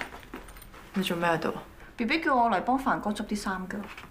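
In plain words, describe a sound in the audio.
A young woman speaks with surprise, close by.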